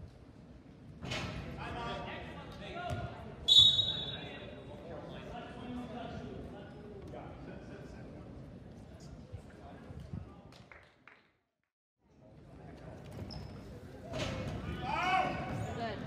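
A crowd cheers and shouts.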